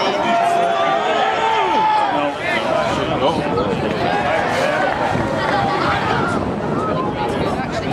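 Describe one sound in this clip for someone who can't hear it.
Spectators cheer and call out from the sideline.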